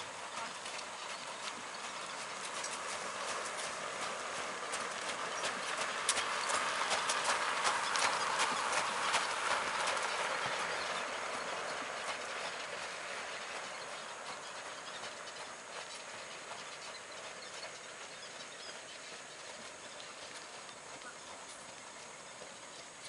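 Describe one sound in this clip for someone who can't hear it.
A horse's hooves thud on sand, coming close and then moving away.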